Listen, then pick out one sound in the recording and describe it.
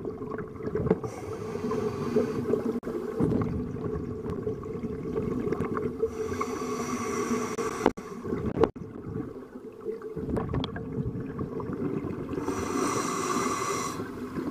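A diver's breathing bubbles gurgle and rush nearby underwater.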